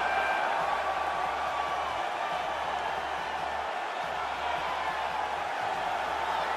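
A large crowd cheers and whistles in a big echoing arena.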